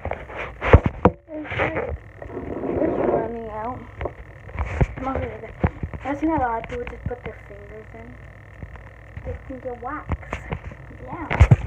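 A young girl talks close to the microphone.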